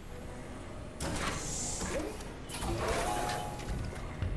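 A heavy metal door slides open with a loud whoosh.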